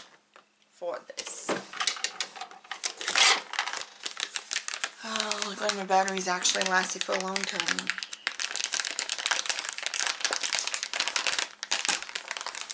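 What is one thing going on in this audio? Small objects clatter and rattle as a woman handles them.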